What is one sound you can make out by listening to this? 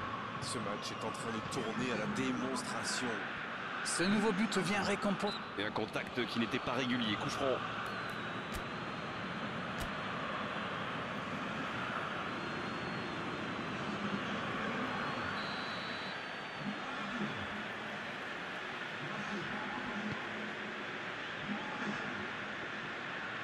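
A stadium crowd murmurs and roars steadily.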